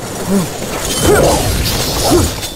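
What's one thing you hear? A blade slashes through the air.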